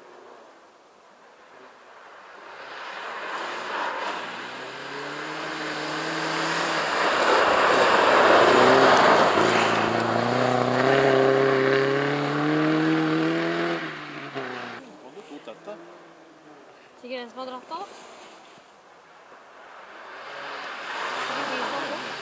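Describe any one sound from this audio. A car engine roars and revs hard as the car approaches, speeds past and fades away.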